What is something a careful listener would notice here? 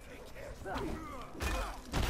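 A bonfire roars and crackles.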